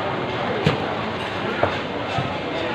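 A cleaver chops sharply into a wooden block.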